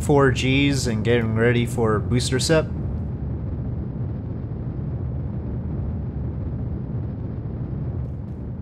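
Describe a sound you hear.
A rocket engine roars with a steady low rumble.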